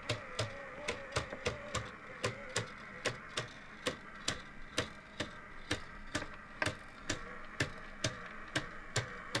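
A plastic clockwork mechanism ticks steadily with sharp clicks.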